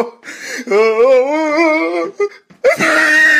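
A man wails and sobs loudly nearby.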